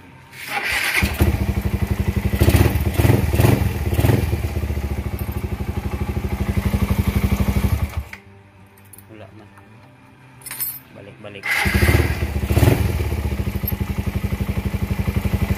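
A motorcycle engine idles with a steady, rapid chug.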